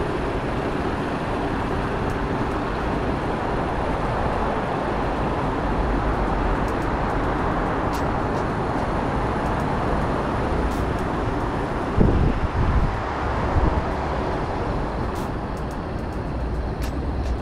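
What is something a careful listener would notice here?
Wind rushes steadily past while riding outdoors.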